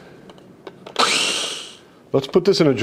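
A food processor whirs briefly.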